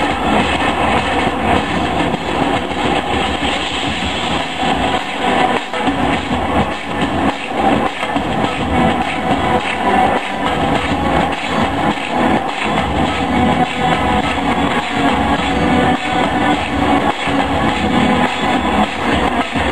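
Loud music plays through a loudspeaker.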